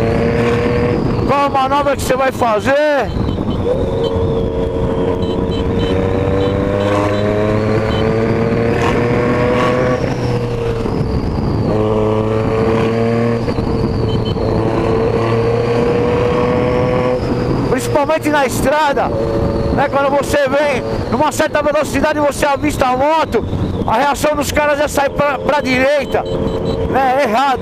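A motorcycle engine hums steadily and rises and falls in pitch as it speeds along.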